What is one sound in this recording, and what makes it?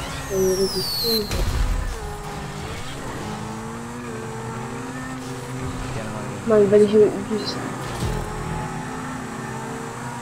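A sports car engine roars steadily, shifting in pitch.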